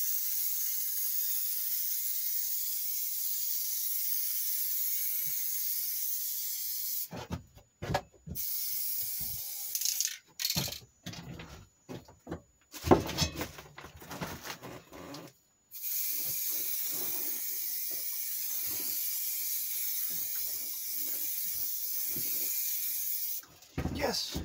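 An aerosol spray hisses in long, steady bursts close by.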